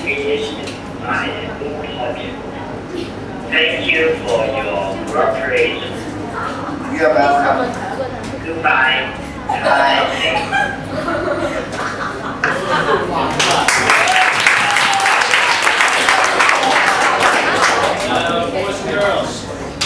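Young people chatter and talk among themselves nearby.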